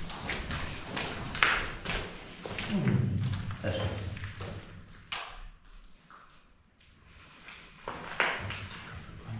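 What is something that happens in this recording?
Footsteps crunch over loose rubble and debris.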